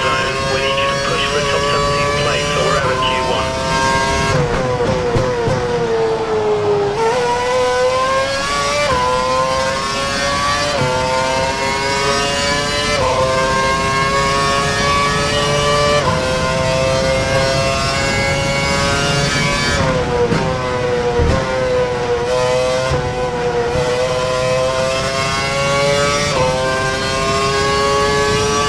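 A racing car engine screams at high revs, rising through the gears and dropping as it brakes.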